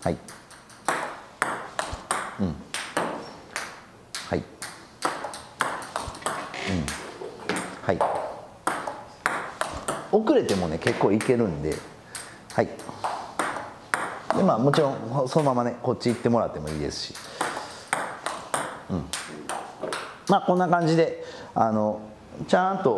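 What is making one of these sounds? A table tennis ball clicks quickly back and forth off paddles and a table.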